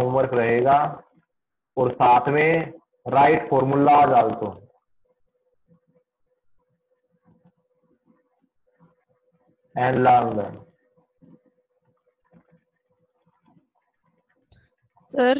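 A man speaks calmly through a microphone, as on an online call.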